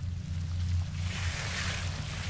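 A wooden crate lid creaks open.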